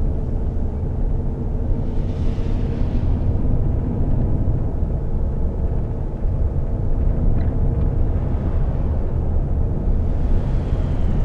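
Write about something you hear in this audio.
Tyres roll on a road with a steady hum.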